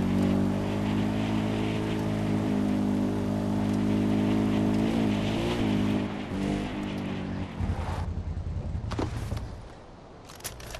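A quad bike engine drones steadily.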